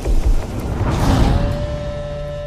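A fiery blast booms.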